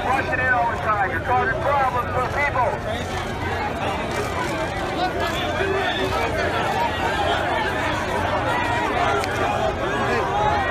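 A crowd of men and women shouts and chants loudly close by, outdoors.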